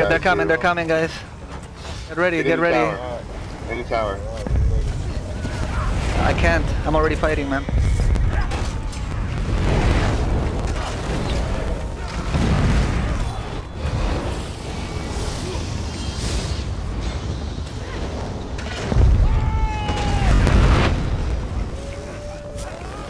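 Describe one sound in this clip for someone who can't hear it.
Magic spells crackle and boom in a fierce battle.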